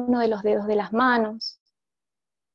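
A woman speaks softly and calmly over an online call.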